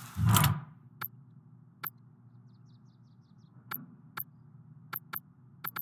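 Short soft clicks tick one after another.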